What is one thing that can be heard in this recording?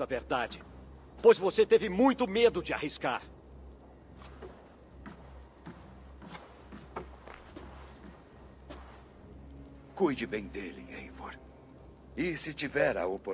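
A man speaks in a deep, calm voice.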